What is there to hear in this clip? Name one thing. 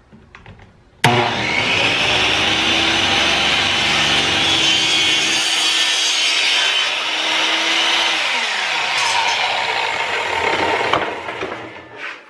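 A power miter saw whines loudly as it cuts through plastic pipe.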